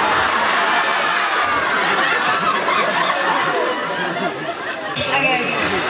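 A young woman laughs into a microphone.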